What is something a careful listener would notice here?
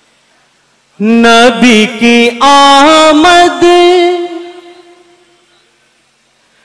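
A young man sings loudly through a microphone, echoing over a loudspeaker.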